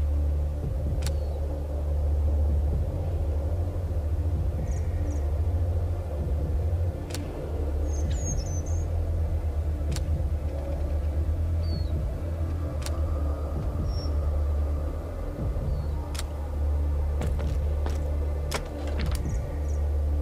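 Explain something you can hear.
Soft clicks sound as menu choices are made.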